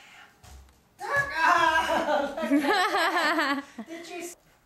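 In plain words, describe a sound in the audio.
A man laughs loudly and happily close by.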